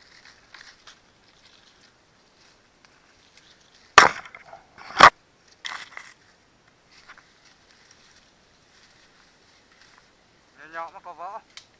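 Footsteps crunch on dry leaf litter.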